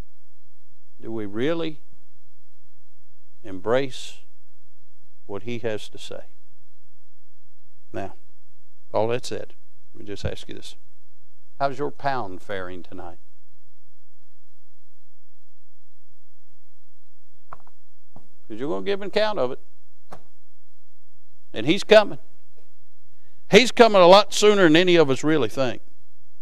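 A man speaks through a microphone in a large hall, pausing between phrases.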